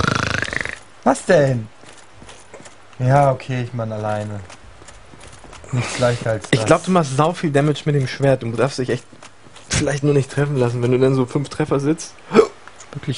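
Two young men talk and laugh with animation, close to a microphone.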